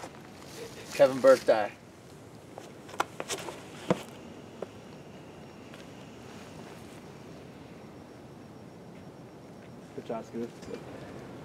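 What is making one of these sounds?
A man talks briefly outdoors.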